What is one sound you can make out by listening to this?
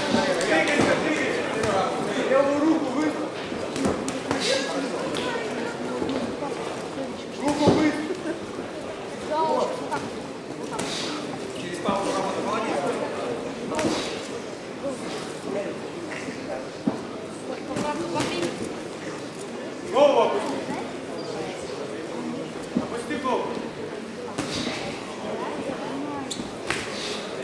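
A crowd murmurs and shouts throughout in a large echoing hall.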